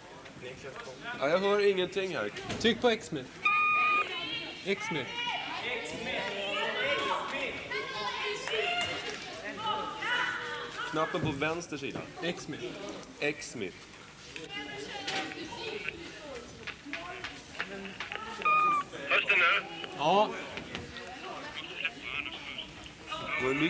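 Young girls call out and shout to each other in a large echoing hall.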